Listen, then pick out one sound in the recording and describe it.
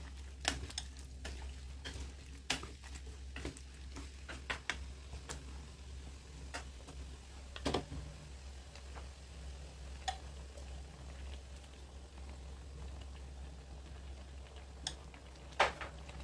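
Food simmers and bubbles gently in a pan.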